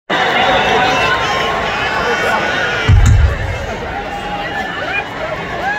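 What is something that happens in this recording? A drum kit thumps with heavy bass.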